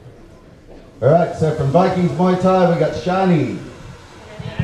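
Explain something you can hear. A man announces loudly through a microphone over loudspeakers in a large echoing hall.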